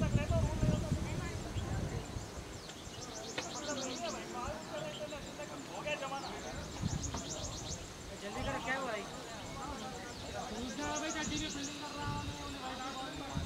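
Young men talk and call out to each other at a distance outdoors.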